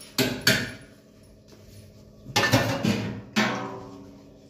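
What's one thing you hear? Metal dishes clink and clatter in a sink.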